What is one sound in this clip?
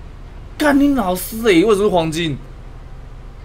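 A young man speaks loudly with animation close to a microphone.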